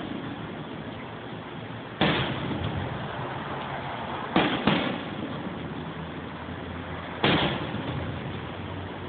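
Fireworks crackle and fizz as they burst.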